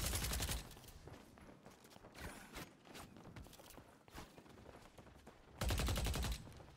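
A gun fires rapid bursts close by.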